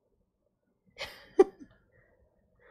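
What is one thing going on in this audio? A woman laughs briefly.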